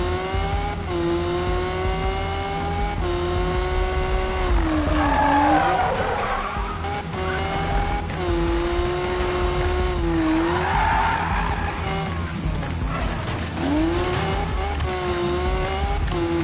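A car engine revs high and shifts gears as it races.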